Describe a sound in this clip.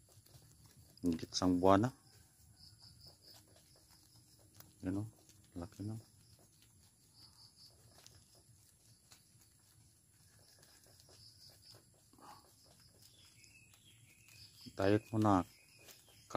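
Rabbits nibble and munch on leaves up close.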